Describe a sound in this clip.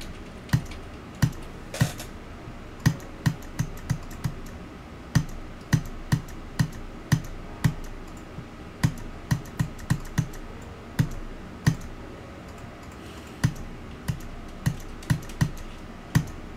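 Electronic game music plays with a punchy, irregular thumping beat.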